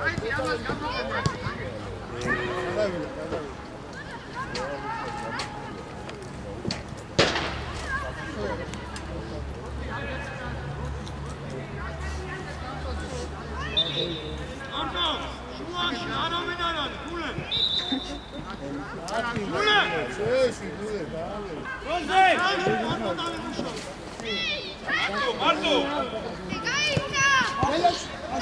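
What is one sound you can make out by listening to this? Young boys shout to each other across an outdoor pitch.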